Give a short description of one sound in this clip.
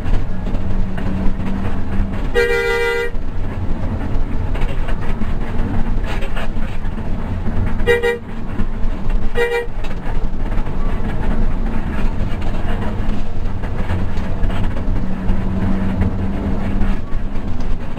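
A bus engine rumbles steadily while driving along a road.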